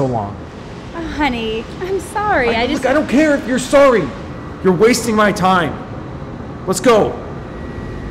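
A woman answers apologetically up close.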